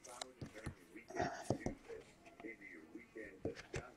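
Plastic card cases click and clack as hands handle them.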